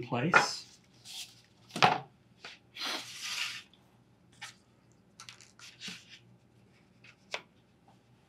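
Pieces of cardboard tap and scrape on a table.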